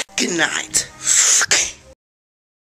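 A teenage boy shouts close by.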